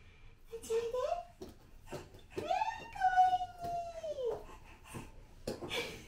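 A toddler squeals and babbles nearby in an echoing hallway.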